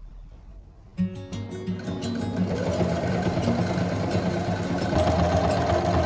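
A sewing machine whirs as it stitches fabric.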